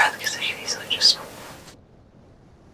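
A woman speaks with animation close by.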